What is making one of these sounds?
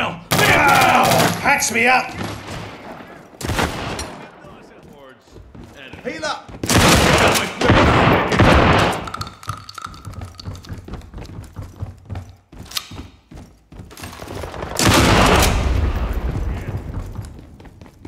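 Rapid gunshots fire in loud bursts.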